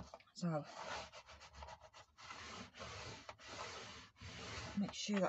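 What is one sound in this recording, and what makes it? A bone folder scrapes firmly along a crease in card.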